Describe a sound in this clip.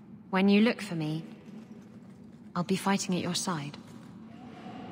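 A young woman speaks calmly and closely.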